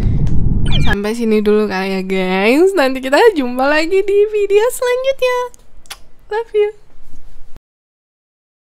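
A young woman sings playfully, close to a microphone.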